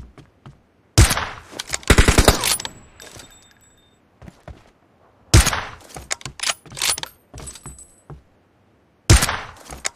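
A sniper rifle fires loud single shots that ring out.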